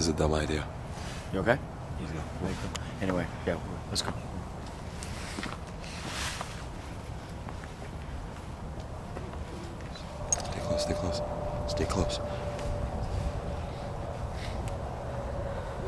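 A man speaks close by in a low, hushed voice.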